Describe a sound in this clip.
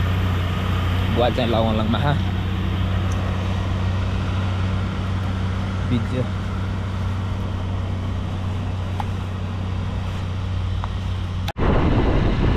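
A motorcycle engine idles with a steady low hum.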